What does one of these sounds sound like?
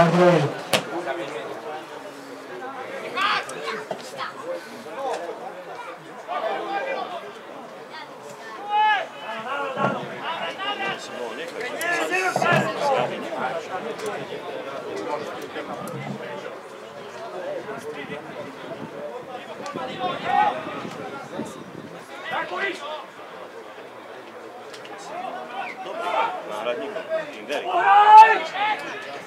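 Players shout to each other across an open football pitch outdoors.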